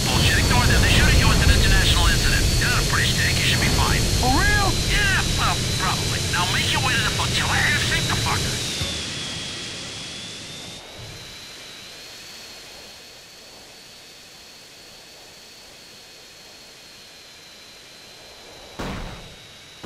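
A jet engine roars steadily with a high whine, then grows quieter.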